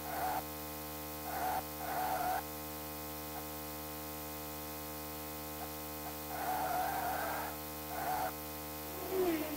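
A racing car engine drones steadily at high speed.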